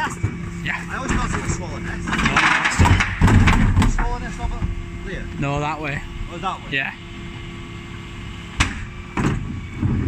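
A hydraulic bin lift whines as it raises and lowers bins.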